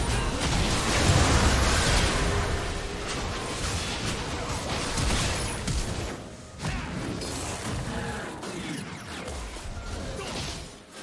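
Game characters' attacks clash and thud.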